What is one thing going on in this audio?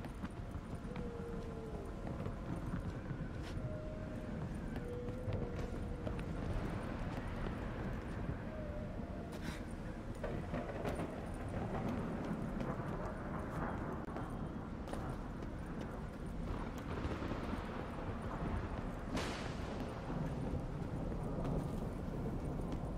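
Footsteps thud quickly on wooden boards and rock.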